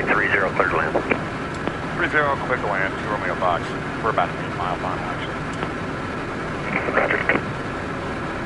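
A man speaks briefly and calmly through a headset intercom.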